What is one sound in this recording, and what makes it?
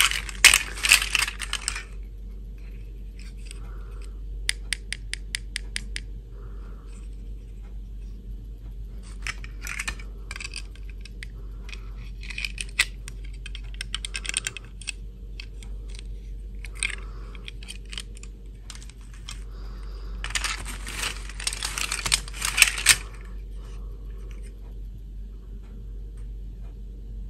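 Small plastic toy pieces click and clack as hands handle them.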